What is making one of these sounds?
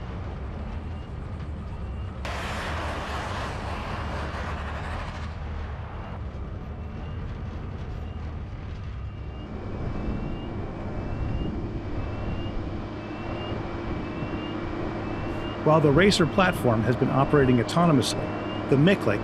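A vehicle engine rumbles steadily up close.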